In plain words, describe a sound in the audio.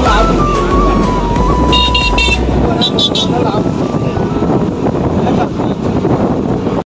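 Motorcycle engines hum as they ride past.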